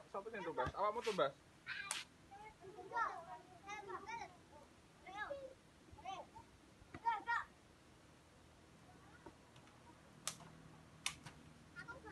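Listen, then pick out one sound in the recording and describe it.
A ball thumps on packed dirt as children kick it.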